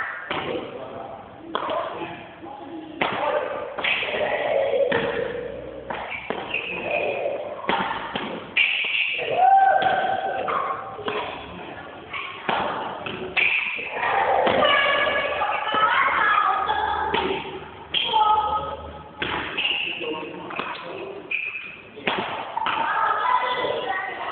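Shuttlecocks are struck with sharp racket smacks, heard in a large echoing hall.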